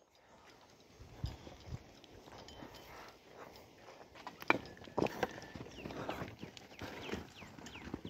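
Cattle hooves shuffle and thud softly on dry dirt.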